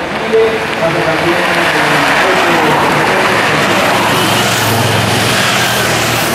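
A car drives by on the road.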